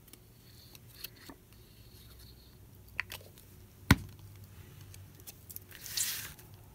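Paper rustles and taps softly.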